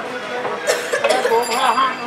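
A plate clinks as food is served.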